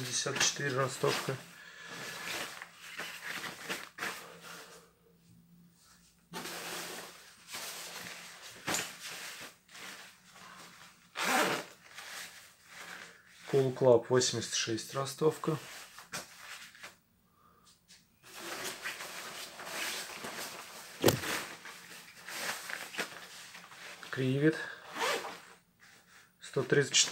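Hands rustle and brush against puffy jacket fabric.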